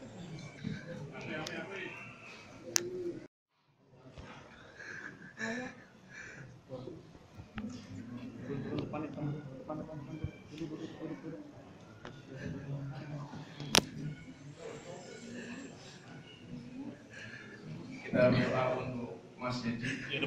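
A crowd of men and women murmurs and calls out nearby in an echoing room.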